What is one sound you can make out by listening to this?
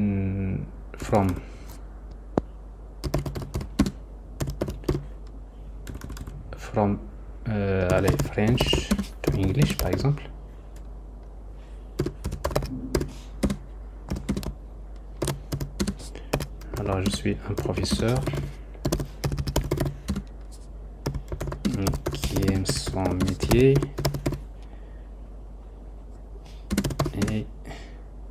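Keys on a keyboard click as someone types.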